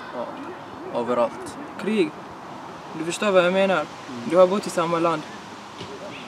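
A young man talks calmly up close.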